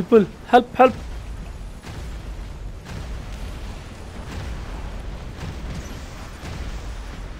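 Heavy guns fire with deep, rumbling blasts.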